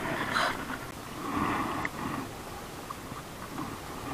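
A small fish splashes in shallow water.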